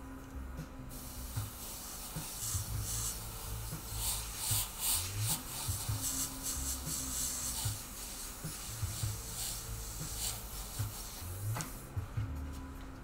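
An airbrush hisses in steady bursts of spray.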